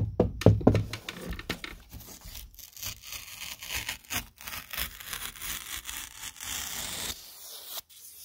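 Fingers scrape and peel brittle paint from a wall with a dry crackle.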